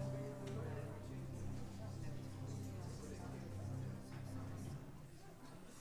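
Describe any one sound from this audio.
An organ plays a chord in a large echoing hall and then stops.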